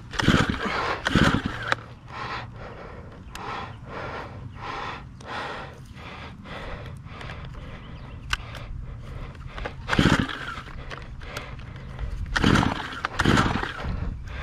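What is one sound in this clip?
A small petrol trimmer engine idles with a steady low putter.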